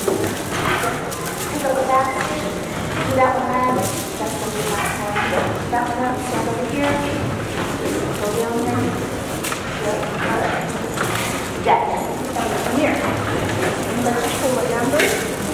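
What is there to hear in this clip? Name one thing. A woman speaks into a microphone over loudspeakers in a large echoing hall.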